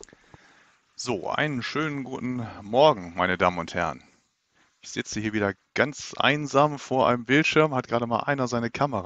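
A middle-aged man speaks calmly and closely into a headset microphone.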